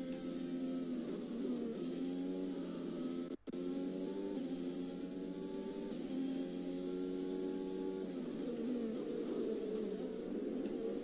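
A Formula One car engine drops in pitch as it shifts down through the gears.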